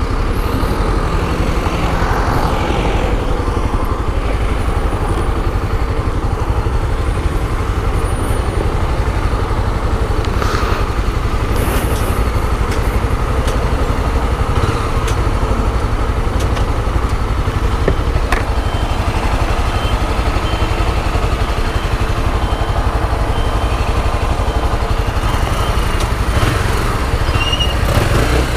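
A single-cylinder motorcycle engine idles.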